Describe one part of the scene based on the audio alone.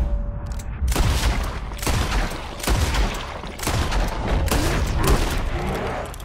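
A rifle fires loudly several times.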